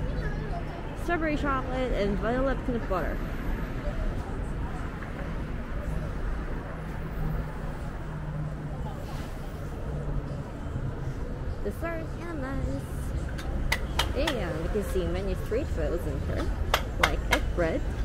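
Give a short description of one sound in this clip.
Men and women talk nearby in a crowd.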